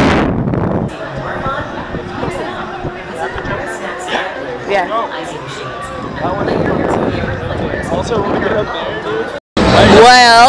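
A crowd of people chatters at a distance.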